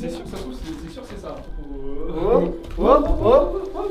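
Footsteps scuff on a gritty floor.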